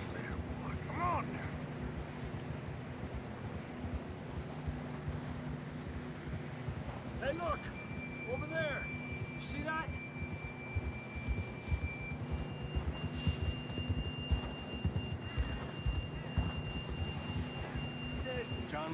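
Horses' hooves crunch and thud steadily through deep snow.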